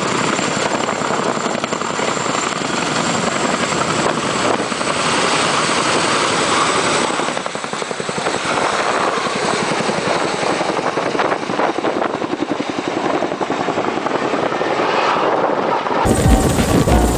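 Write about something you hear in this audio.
A helicopter's rotors thump loudly close by as it flies past.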